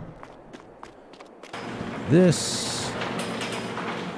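A roller door rattles open.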